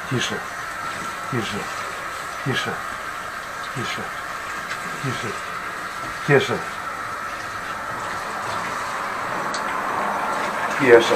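A cat meows repeatedly close by.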